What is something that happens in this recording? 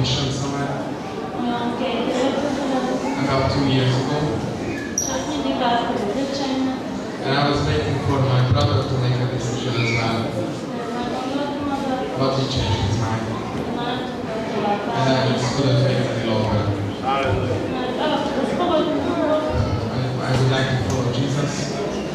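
A man speaks into a handheld microphone in a large echoing hall.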